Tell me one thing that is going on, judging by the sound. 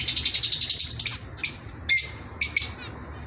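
A small finch gives short, sharp calls.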